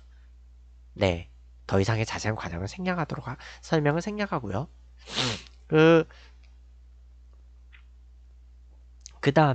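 A young man speaks with animation into a close microphone, in short bursts with pauses.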